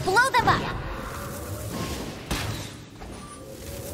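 A bow twangs as an arrow flies.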